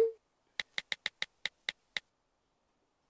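A phone gives short clicking beeps.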